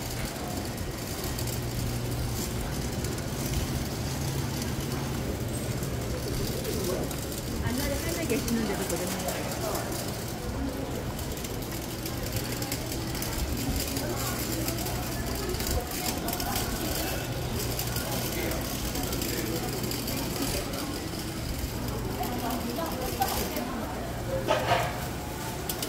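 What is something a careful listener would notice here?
A crowd of shoppers murmurs and chatters under a covered arcade.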